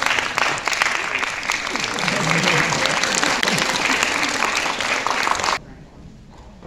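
An audience claps loudly and then stops.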